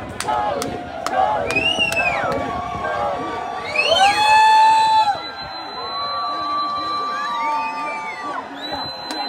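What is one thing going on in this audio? People in a crowd whistle in long gliding tones.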